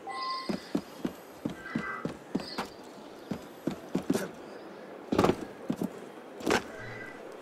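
Footsteps thud quickly across a tiled roof.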